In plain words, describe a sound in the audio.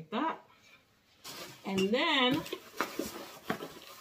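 A cardboard box rustles and scrapes.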